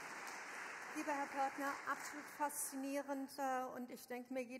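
A woman speaks into a microphone in a large hall.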